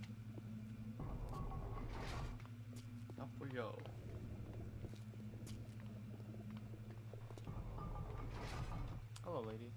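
A heavy metal vault door rumbles and grinds open.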